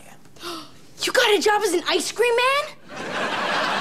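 A young boy shouts excitedly nearby.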